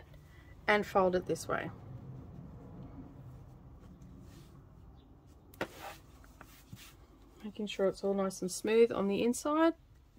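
Fabric rustles softly as it is folded and smoothed.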